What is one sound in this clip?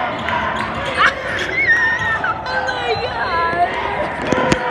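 A boy shouts loudly.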